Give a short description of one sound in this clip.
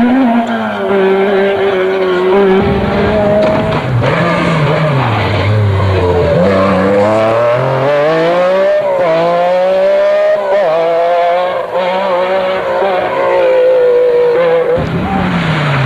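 A Metro 6R4 rally car's V6 engine roars past at full throttle, shifting gears, and fades away.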